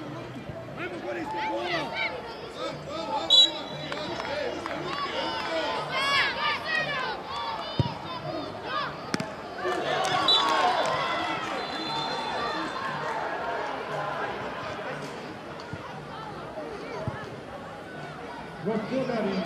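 Young players and spectators shout and call out across an open field.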